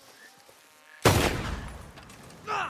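Fire bursts into flame with a loud whoosh.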